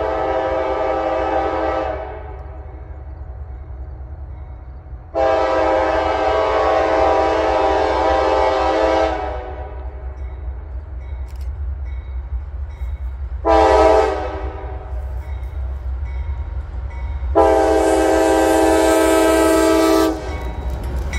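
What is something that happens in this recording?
A train horn blows loudly in long and short blasts.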